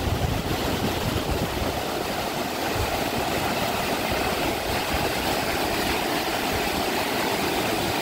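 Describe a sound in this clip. Water rushes and splashes loudly down a rocky chute close by.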